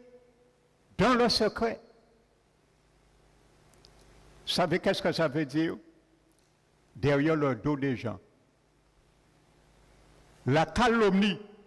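A man speaks slowly in short phrases through a microphone, echoing in a large hall.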